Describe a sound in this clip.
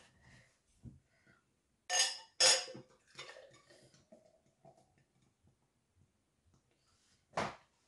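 Beer pours and fizzes into a glass.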